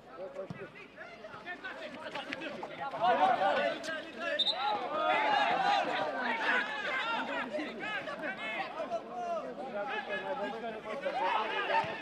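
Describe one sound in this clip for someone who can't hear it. A football thuds as players kick it.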